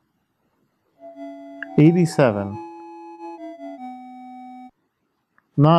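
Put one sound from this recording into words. A short electronic tune plays in simple beeping tones.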